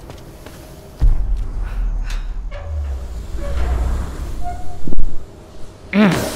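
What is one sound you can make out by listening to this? A heavy metal valve wheel grinds and creaks as it turns.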